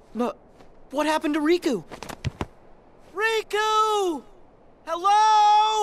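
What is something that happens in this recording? A young boy calls out loudly.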